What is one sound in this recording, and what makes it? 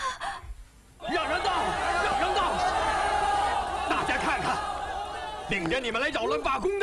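A crowd of men shouts and roars loudly.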